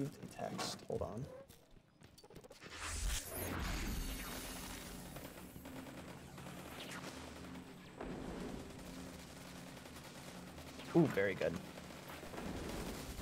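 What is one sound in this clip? Guns fire in short bursts.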